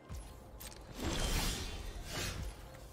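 A bright, swelling game chime rings out.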